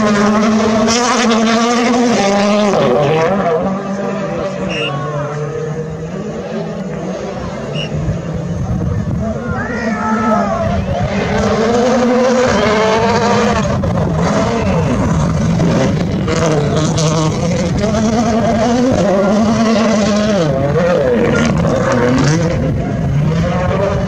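A rally car engine roars and revs hard, rising and falling in pitch as the car shifts gears.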